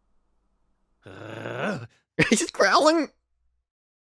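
A man growls loudly.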